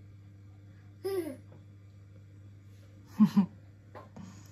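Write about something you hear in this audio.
A toddler babbles and squeals.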